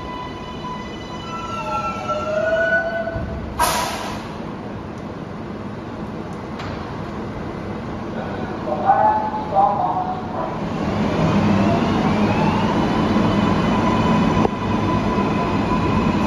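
Subway train motors whine with rising and falling tones.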